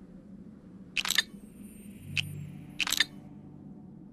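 A shimmering chime rings as a game piece jumps and vanishes.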